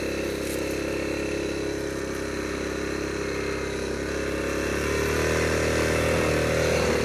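A single-cylinder four-stroke Yamaha Grizzly 660 ATV engine drones as the ATV rides through snow, speeding up near the end.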